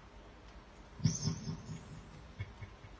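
A small child squeals briefly.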